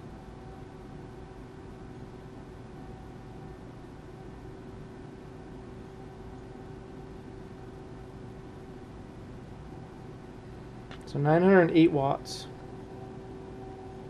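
A steady low electrical tone hums throughout.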